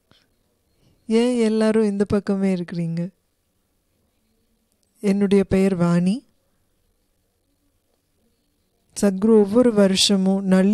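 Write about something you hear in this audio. A woman sings loudly through a microphone in short phrases.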